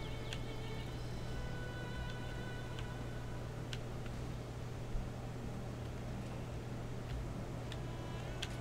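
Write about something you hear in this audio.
Footsteps patter on stone paving.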